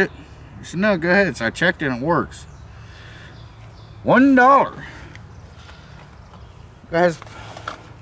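An elderly man speaks close by in a deep, gravelly voice.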